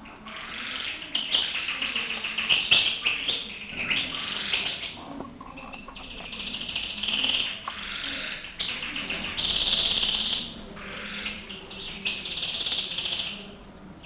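Caged birds sing with rapid trills and chirps close by.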